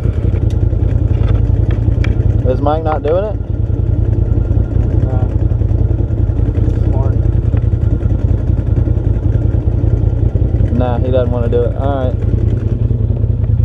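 An engine rumbles steadily close by.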